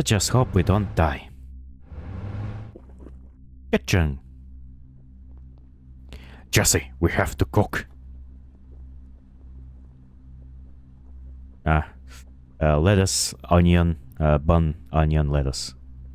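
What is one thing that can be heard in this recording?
A young man talks with animation into a microphone, in bursts with pauses.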